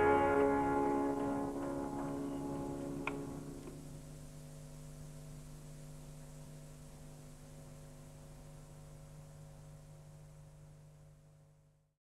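A steady low drone hums underneath and dies out at the end.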